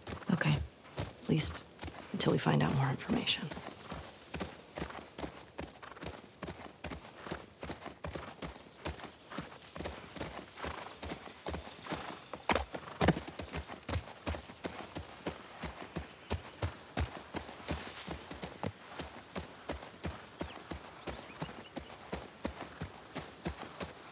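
Horse hooves clop steadily on a dirt trail.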